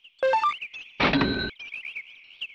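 A bright electronic chime rings out briefly.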